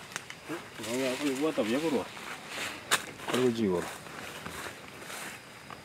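Footsteps rustle through grass and leaves.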